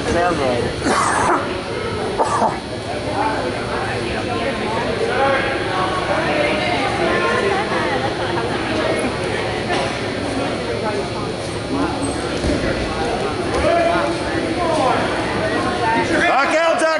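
Wrestlers' shoes squeak and thump on a mat.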